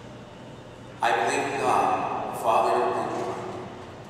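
A woman reads aloud through a microphone in a large echoing hall.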